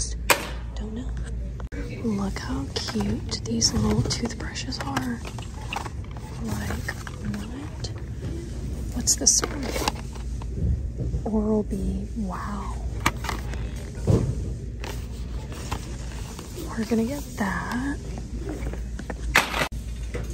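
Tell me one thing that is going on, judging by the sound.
A shopping cart rolls with a low rattle.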